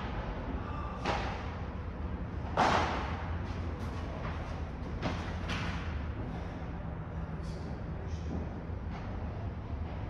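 Padel rackets strike a ball with sharp pops that echo in a large indoor hall.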